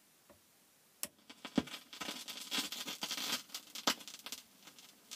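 Music plays from a record.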